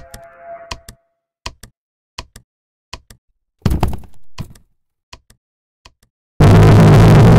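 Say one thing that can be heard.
Footsteps tap quickly along a hard floor.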